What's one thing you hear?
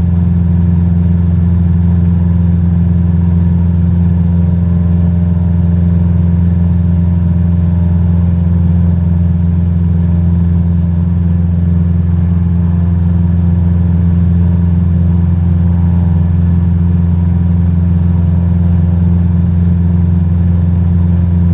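A small propeller plane's engine drones steadily and loudly.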